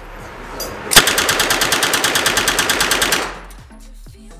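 A rifle fires a rapid automatic burst.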